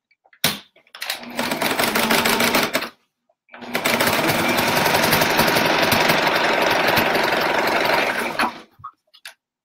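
A sewing machine runs in fast bursts, stitching with a rapid whirring rattle.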